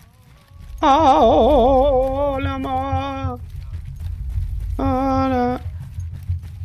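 A man sings in a wavering voice close to a microphone.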